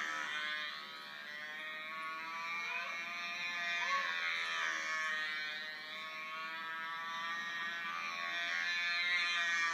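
A small engine whines loudly and steadily, its pitch rising and falling as it passes.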